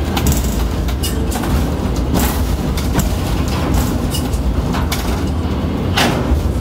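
A crane's machinery hums and whirs steadily.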